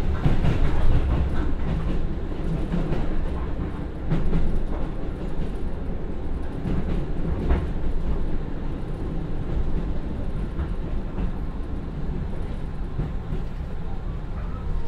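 Train wheels clack and rattle on the rails.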